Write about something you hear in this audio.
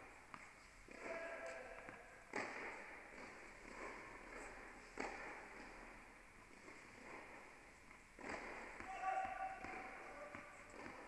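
Sports shoes squeak on a hard court.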